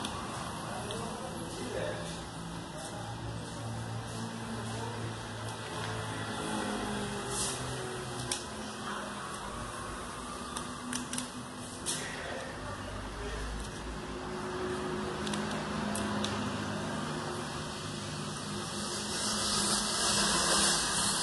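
Plastic film crinkles and rustles as it is peeled and smoothed by hand.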